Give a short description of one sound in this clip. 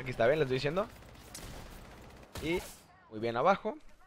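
Gunfire cracks in rapid shots.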